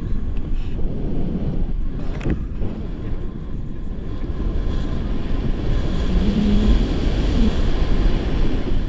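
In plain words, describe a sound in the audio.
A young man laughs and talks close by, partly drowned by wind.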